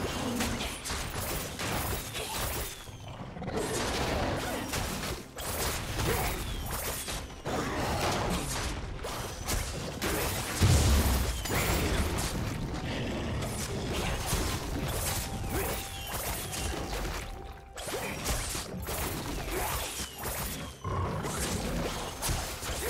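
Game spell effects whoosh and clash over and over in a fight.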